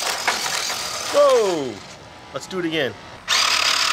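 A toy motorbike's small motor whirs as it rolls over concrete.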